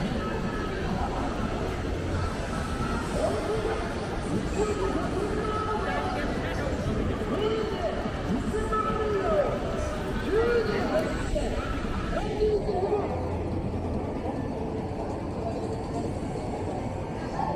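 A crowd of pedestrians chatters outdoors.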